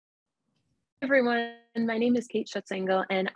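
A young woman speaks cheerfully through an online call.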